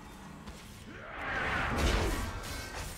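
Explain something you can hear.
Game spell effects whoosh and crash in a burst of combat.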